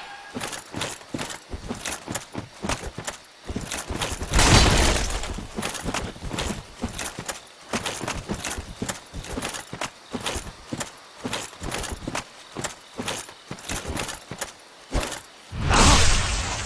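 Heavy armoured footsteps clank steadily on the ground.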